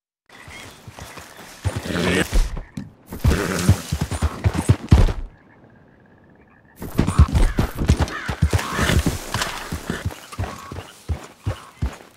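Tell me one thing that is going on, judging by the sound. A horse gallops, hooves thudding on the ground.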